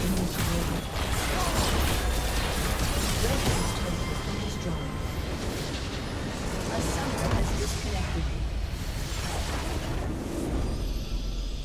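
Video game battle effects crackle and burst.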